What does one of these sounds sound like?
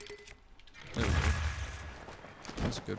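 A bomb explodes with a deep boom.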